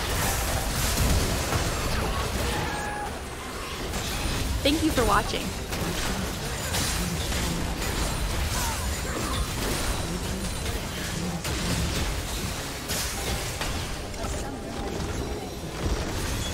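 Game spells crackle and blast in a busy fight.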